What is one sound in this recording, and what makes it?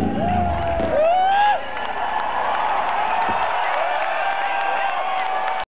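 A crowd whistles shrilly.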